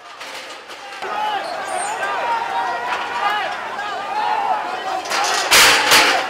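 A crowd shouts and clamours outdoors.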